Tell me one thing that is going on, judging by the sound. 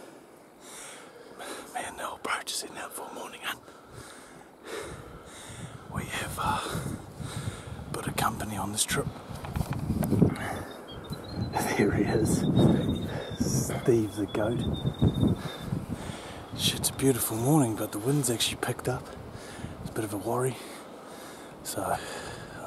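A young man talks quietly, close by.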